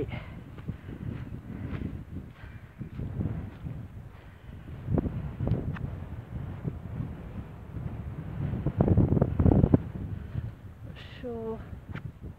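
Wind gusts and buffets loudly across open ground outdoors.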